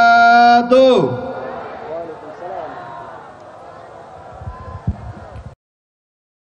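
A large crowd cheers and shouts in the distance.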